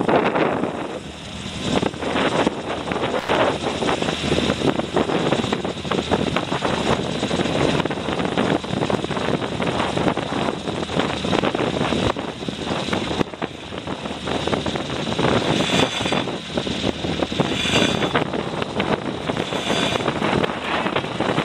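Strong wind rushes and buffets loudly outdoors.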